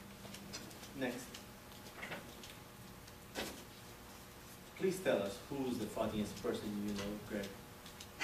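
A man speaks calmly, with pauses, in a room with a slight echo.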